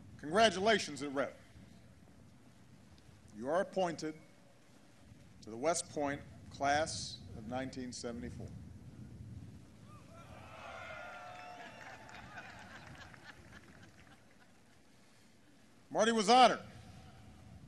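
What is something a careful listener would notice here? A man speaks slowly and firmly through a microphone and loudspeakers outdoors, with pauses between phrases.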